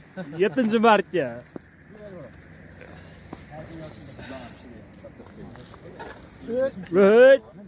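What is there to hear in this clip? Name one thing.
Several young men talk and call out loudly outdoors.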